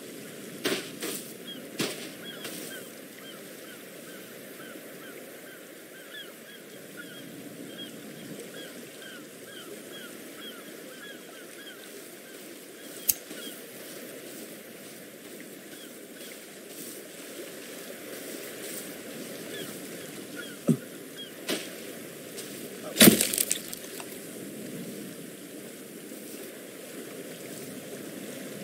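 Waves wash gently onto a shore.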